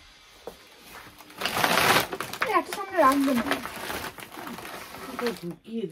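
Cardboard boxes rustle and scrape as a hand moves them.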